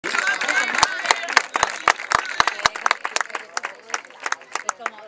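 Players clap their hands in scattered applause outdoors.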